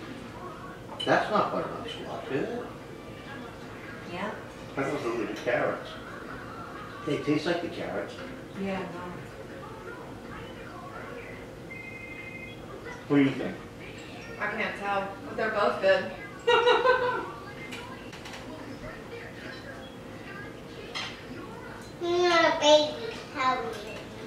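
A woman talks casually nearby.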